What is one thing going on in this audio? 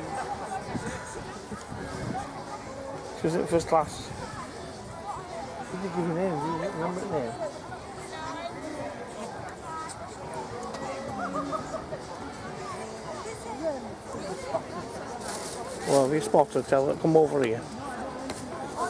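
A crowd of men and women chat nearby outdoors.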